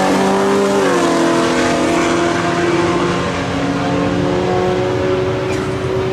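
Two car engines roar loudly as the cars race down the track.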